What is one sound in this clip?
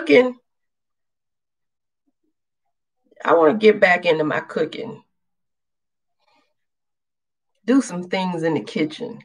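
A woman talks calmly and close up, in short bursts with pauses.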